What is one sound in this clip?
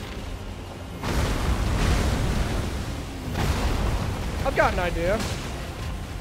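A dragon roars and thrashes.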